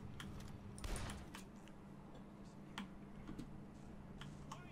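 Glass and debris clatter and scatter.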